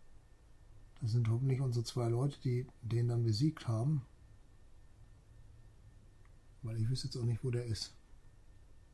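An elderly man speaks calmly and close into a microphone.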